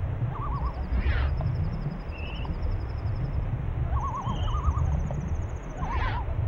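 A creature swishes through water in quick bursts.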